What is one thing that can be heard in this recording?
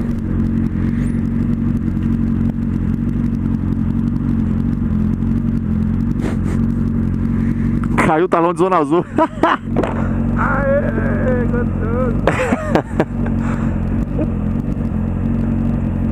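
A motorcycle engine idles steadily close by.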